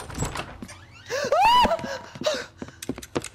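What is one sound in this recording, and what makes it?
A woman cries out sharply.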